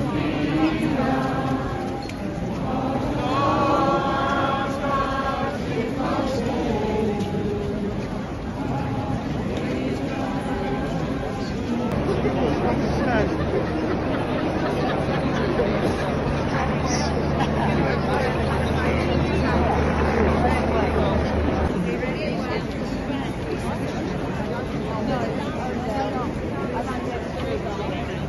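A large crowd chants and cheers outdoors.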